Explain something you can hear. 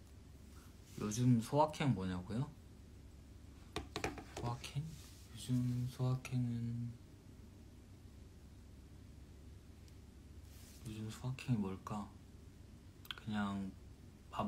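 A young man speaks calmly and thoughtfully close to a microphone, with pauses.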